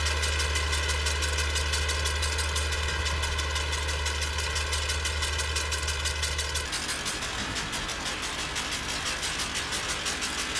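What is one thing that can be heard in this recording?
A mower clatters rapidly as it cuts grass.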